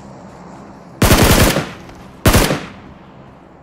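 Gunshots ring out in two short, loud bursts.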